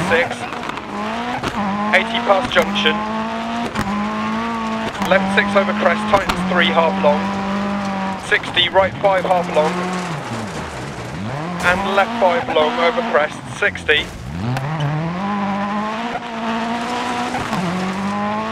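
Gravel sprays and rattles under the tyres.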